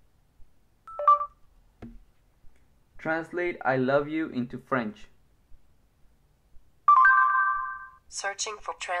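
A phone gives short electronic beeps.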